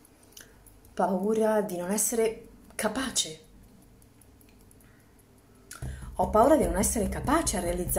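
A woman talks with animation, close to the microphone.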